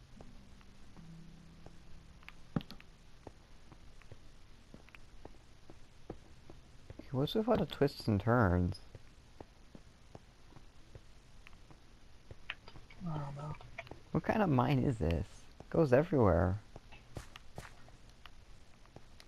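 Footsteps tread softly on stone.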